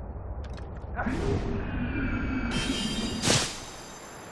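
Air rushes loudly past a diving figure.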